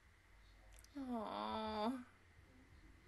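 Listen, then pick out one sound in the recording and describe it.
A young woman hums a short gliding tune close into a microphone.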